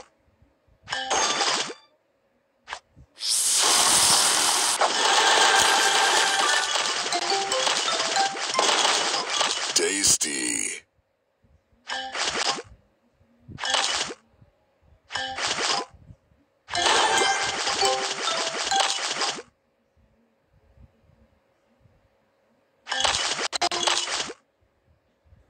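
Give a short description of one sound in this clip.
Bright game chimes and sparkling effects ring out in bursts as candies match and burst.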